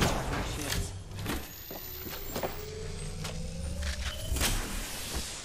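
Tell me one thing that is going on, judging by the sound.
An electronic hum rises in pitch as a device charges.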